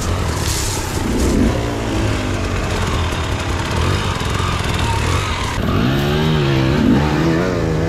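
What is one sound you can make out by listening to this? A dirt bike engine revs and climbs nearby.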